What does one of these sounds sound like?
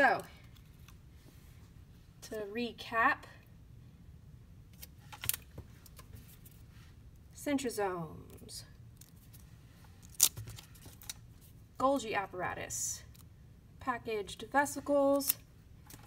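Paper labels rustle as a hand handles them.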